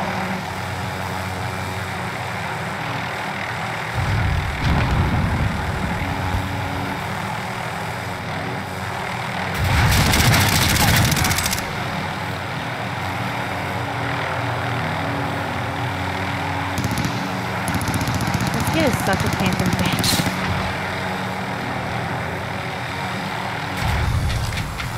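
Helicopter rotor blades whir steadily in flight.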